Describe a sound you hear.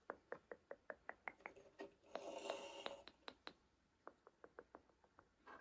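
A plastic fidget toy clicks rapidly and sharply up close.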